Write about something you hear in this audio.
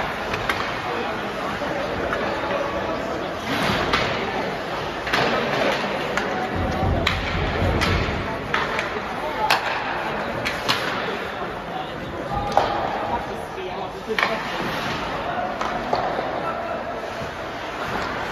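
A crowd of spectators murmurs in a large echoing rink.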